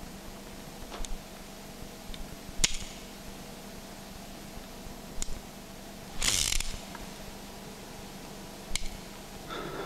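A revolver clicks sharply as it is handled and cocked.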